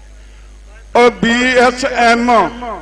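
A young man chants loudly in quick, repeated bursts.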